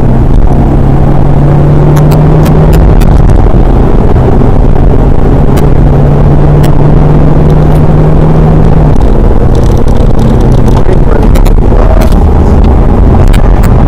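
A car engine roars loudly at high revs from inside the cabin.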